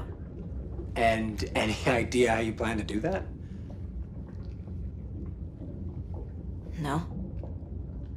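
A young woman asks a question calmly, close by.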